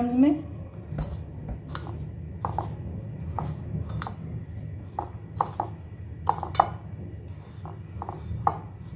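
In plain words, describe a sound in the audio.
A spoon scrapes and pats through dry breadcrumbs.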